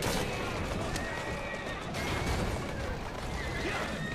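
Two carriages crash together with a loud thump.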